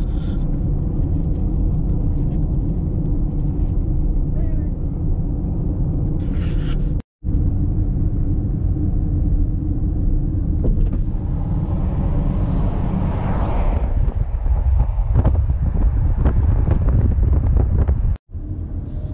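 A car drives along a highway with a steady low road rumble heard from inside.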